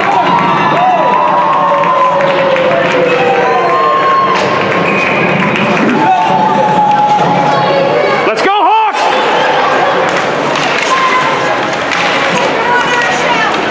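Spectators chatter and call out in a large echoing rink.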